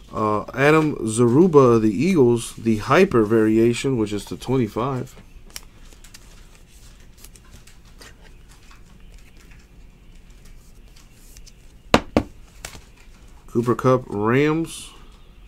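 Trading cards rustle and flick between fingers.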